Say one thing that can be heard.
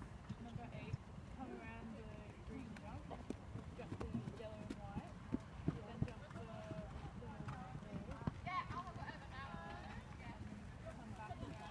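A horse's hooves thud softly on sand as it canters.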